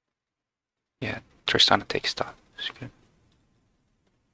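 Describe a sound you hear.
A young man speaks briefly and with animation into a microphone, close by.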